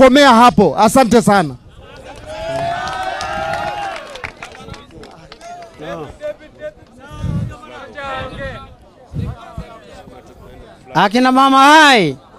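An elderly man speaks loudly and with animation through a microphone and loudspeaker outdoors.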